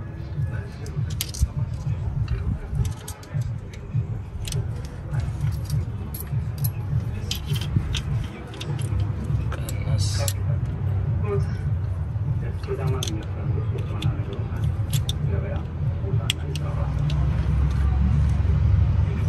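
Metal tools click and scrape against engine parts.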